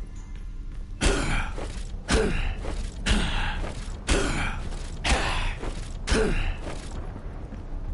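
Loud whooshing blows strike again and again, about once a second.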